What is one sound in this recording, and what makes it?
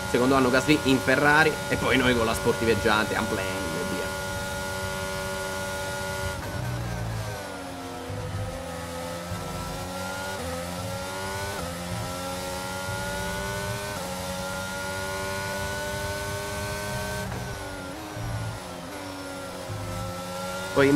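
A racing car engine screams at high revs, rising in pitch and dropping sharply with each gear change.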